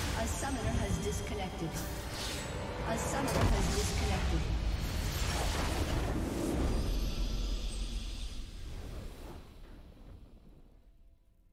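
Magic blasts and clashing weapons crackle in a busy fight.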